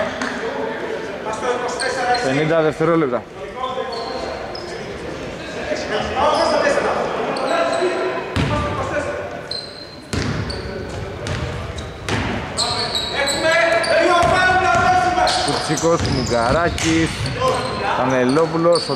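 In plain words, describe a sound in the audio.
Men shout to each other in a large echoing arena.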